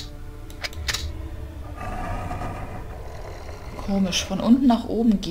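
Game tiles click as they slide into new places.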